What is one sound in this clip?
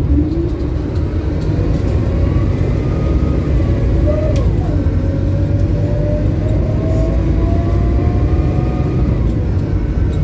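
A bus engine whines, rising in pitch as it speeds up.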